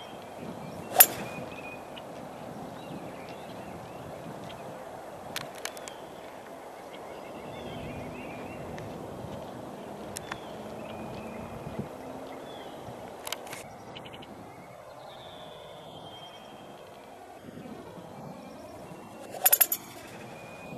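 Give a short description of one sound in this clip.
A golf club strikes a ball with a sharp, crisp crack.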